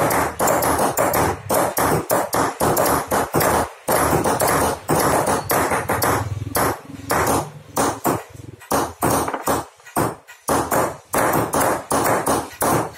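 Hammers tap chisels into metal in quick, uneven blows.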